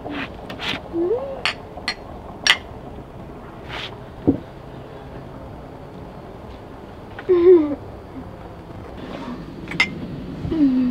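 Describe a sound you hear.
Glasses clink together in a toast.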